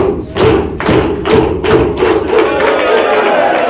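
An audience claps in a quick, steady rhythm.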